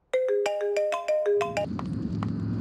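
A phone rings with a short electronic tune.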